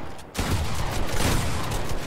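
A gunshot cracks.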